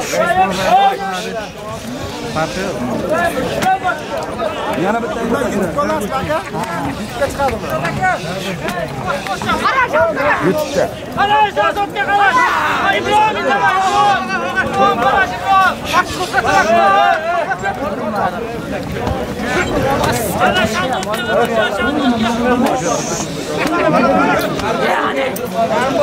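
A crowd of men shouts and calls out loudly outdoors.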